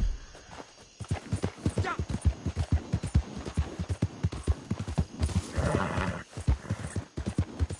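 A horse gallops with rapid, heavy hoofbeats on hard ground.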